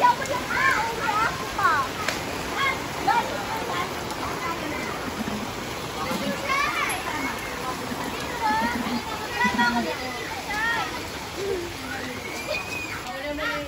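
A young woman speaks casually nearby.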